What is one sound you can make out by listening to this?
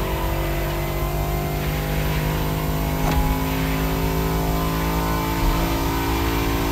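A powerful car engine roars steadily at high speed, its pitch slowly climbing.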